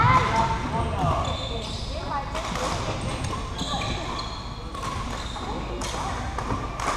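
Many young people chatter and call out across a large echoing hall.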